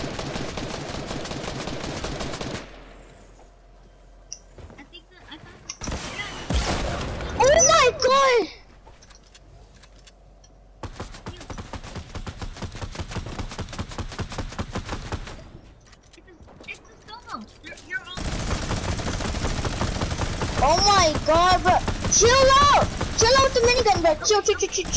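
Footsteps thud on wooden planks in a game.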